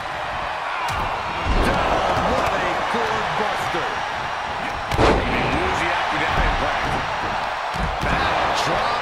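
A large crowd cheers and roars steadily.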